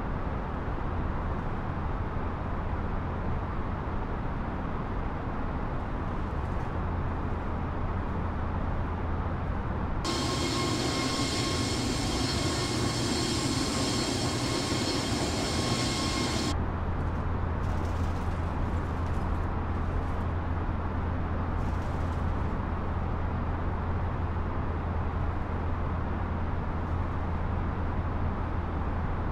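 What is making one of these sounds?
Jet engines hum in a low, steady drone, muffled as if heard from inside a cockpit.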